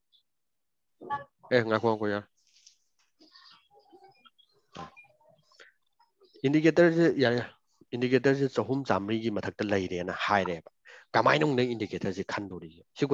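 A young man speaks over an online call.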